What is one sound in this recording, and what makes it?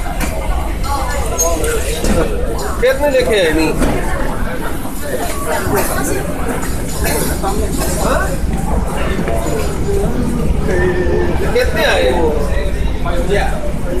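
Footsteps shuffle along as people walk forward.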